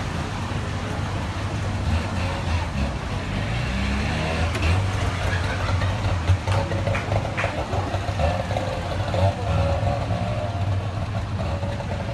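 A small car drives slowly away down the street.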